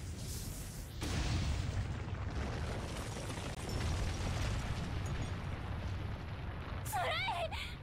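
A deep rumble of crumbling stone rolls on.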